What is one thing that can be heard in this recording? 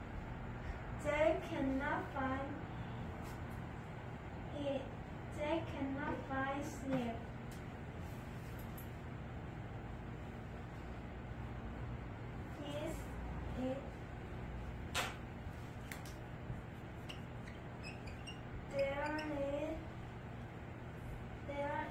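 A girl speaks calmly and haltingly, close by.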